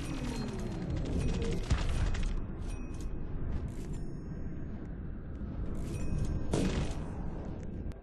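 Game sound effects whoosh and burst as a character attacks.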